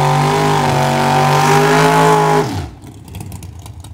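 Tyres screech during a smoky burnout.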